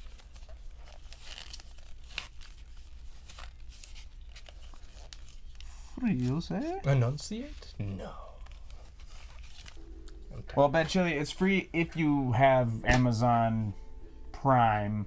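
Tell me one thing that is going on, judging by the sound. Cardboard cards rustle and tap as hands handle them.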